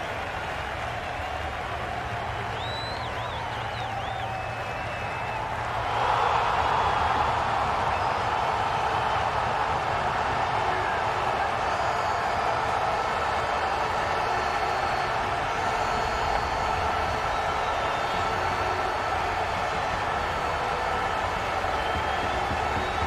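A large stadium crowd cheers steadily, growing louder after a few seconds.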